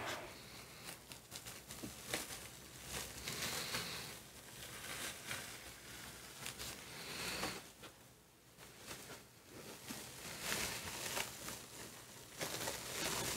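A large sheet of paper crinkles and rustles as it is slowly peeled away.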